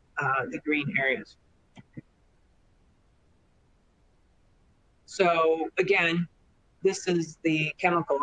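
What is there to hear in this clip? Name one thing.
A woman speaks calmly through a microphone, as if on an online call.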